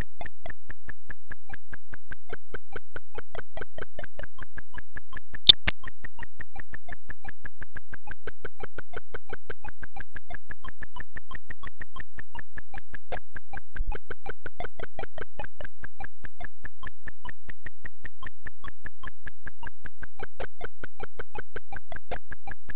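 Fast electronic game music beeps in a steady, rapid pulse.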